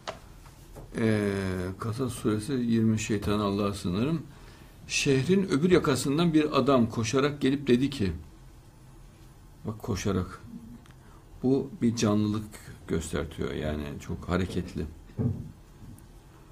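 A man speaks calmly and steadily close to a microphone.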